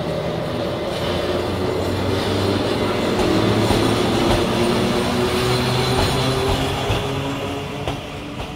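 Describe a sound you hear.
An electric locomotive hums loudly as it rolls in.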